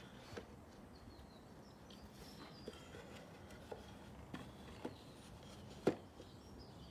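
Wooden boxes knock and clatter as they are handled on a workbench.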